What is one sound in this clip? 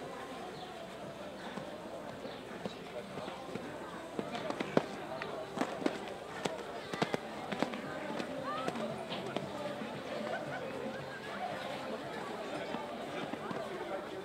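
A horse's hooves thud on soft sand at a canter.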